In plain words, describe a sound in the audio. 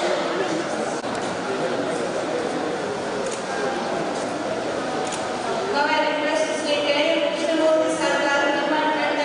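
A middle-aged man talks.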